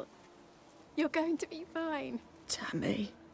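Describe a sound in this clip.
An elderly woman speaks weakly, close by.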